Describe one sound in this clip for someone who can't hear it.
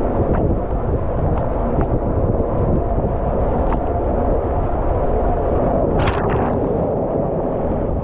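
Water rushes and roars through an enclosed slide tube.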